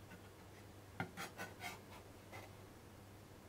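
A knife clacks against a wooden board.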